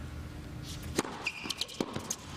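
A tennis racket strikes a ball sharply.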